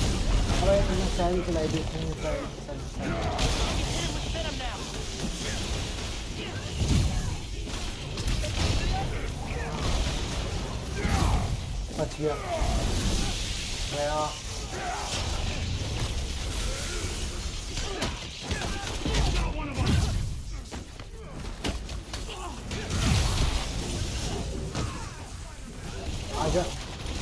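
Punches and blows thud in a fast video game fight.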